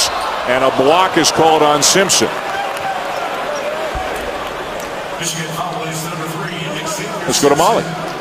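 A crowd cheers and shouts loudly nearby.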